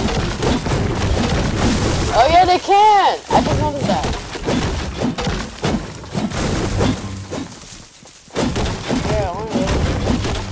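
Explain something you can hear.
A pickaxe chops repeatedly into a tree trunk.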